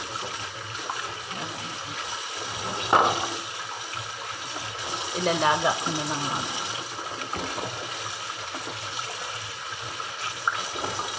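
Water runs steadily from a tap into a sink.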